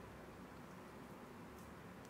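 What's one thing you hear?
A spoon scrapes inside an avocado skin.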